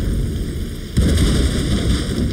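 Dust bursts with a loud explosion.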